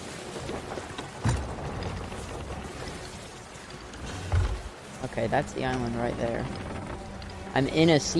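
Wind rushes past the sails.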